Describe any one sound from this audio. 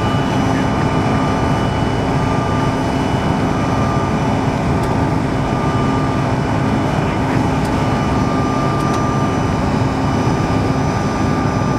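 Jet engines roar steadily inside an airliner cabin as the plane climbs.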